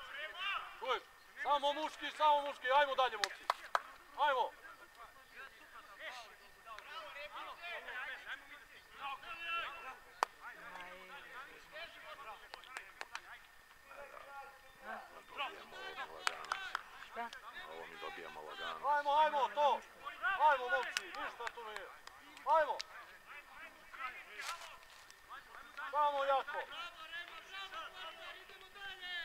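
Men shout and call to each other across an open field outdoors.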